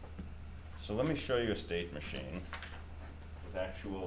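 A sheet of paper is flipped over with a rustle.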